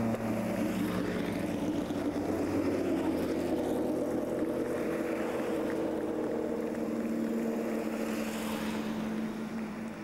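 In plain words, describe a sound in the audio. A racing car's engine roars loudly as it speeds past close by.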